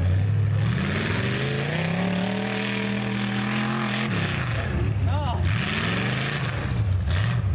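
Mud sprays and splatters from spinning tyres.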